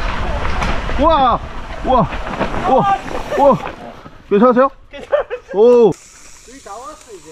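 A young man calls out loudly and excitedly, close by.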